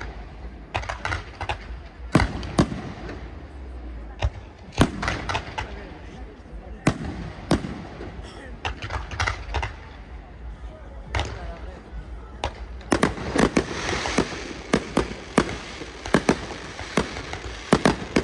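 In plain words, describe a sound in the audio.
Fireworks boom and bang loudly in quick succession, echoing outdoors.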